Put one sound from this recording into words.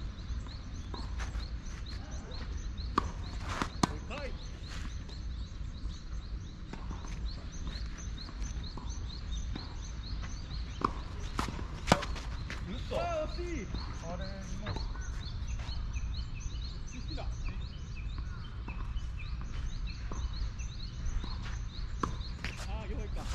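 Birds chirp repeatedly nearby.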